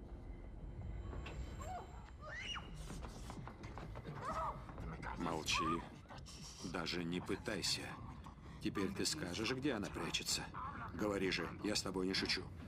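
Clothes rustle and bodies thump in a struggle.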